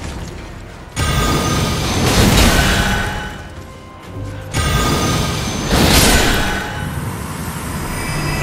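A spell bursts with a loud, shimmering whoosh.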